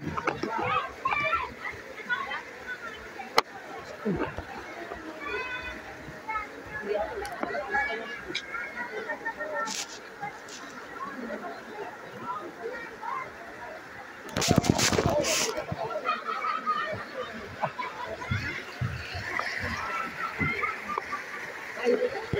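Children talk and call out nearby, outdoors.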